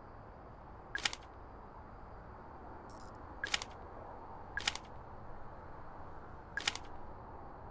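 Electronic menu sounds click as pages are advanced.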